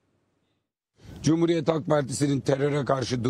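A middle-aged man speaks to reporters' microphones outdoors.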